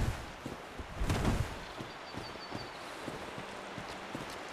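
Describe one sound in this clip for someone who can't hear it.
Footsteps crunch through grass and leaves.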